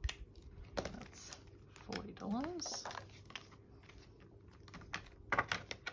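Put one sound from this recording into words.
Plastic sleeves crackle.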